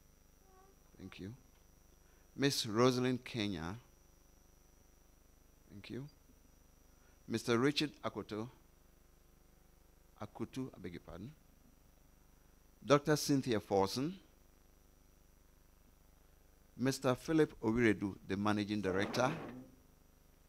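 A man speaks through a microphone in short bursts with pauses.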